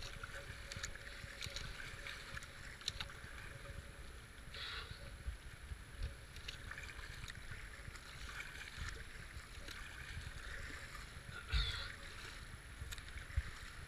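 A paddle splashes into the water in steady strokes.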